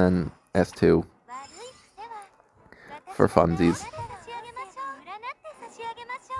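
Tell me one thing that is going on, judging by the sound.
A magical spell crackles and sparkles.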